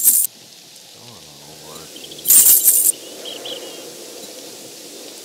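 A man speaks quietly into a close microphone.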